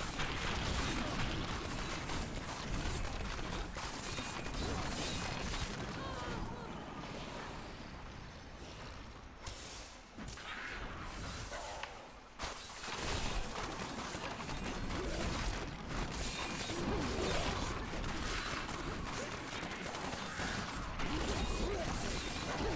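Spells crackle and explode in dense, rapid bursts.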